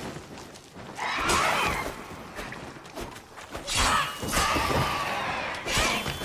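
A large winged creature screeches loudly.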